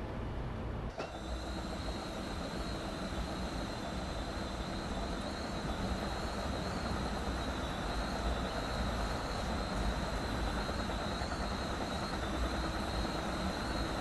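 A train rumbles along the rails.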